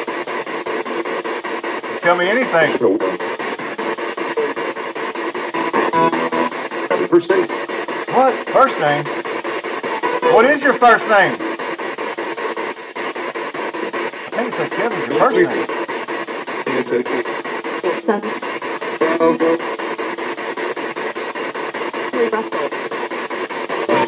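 A radio scans through stations with steady static hiss.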